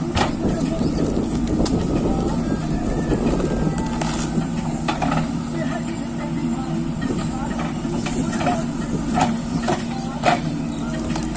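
A backhoe bucket scrapes and thuds into dirt.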